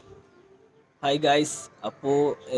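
A young man speaks with animation close to a phone microphone.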